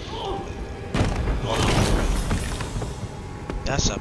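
Heavy double doors swing open.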